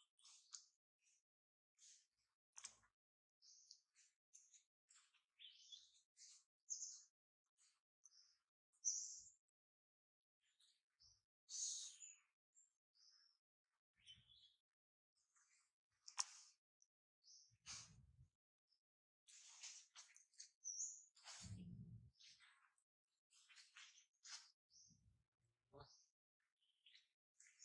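A baby monkey gives soft, high squeaks in short bursts.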